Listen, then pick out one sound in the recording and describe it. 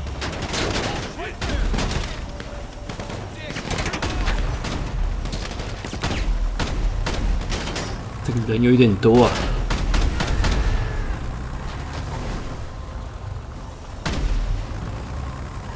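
Tyres crunch over gravel and snow.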